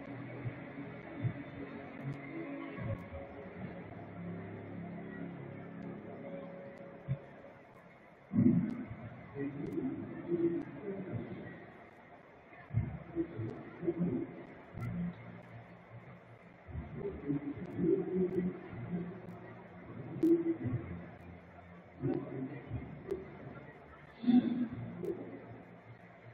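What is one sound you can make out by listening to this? A stadium crowd murmurs in the distance.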